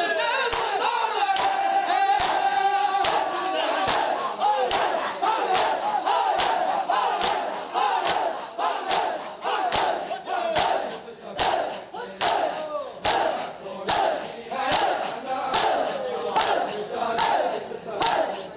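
A crowd of men chants loudly along with the beating.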